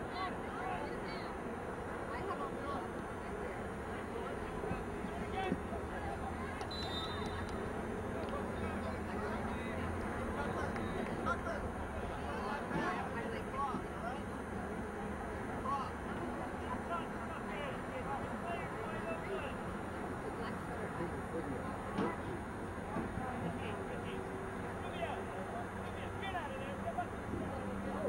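Players and spectators shout and chatter across an open field.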